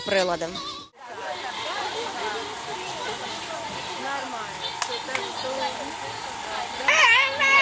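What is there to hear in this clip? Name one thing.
Young children chatter and call out nearby.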